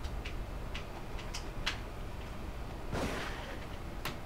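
A gunshot bangs in a room.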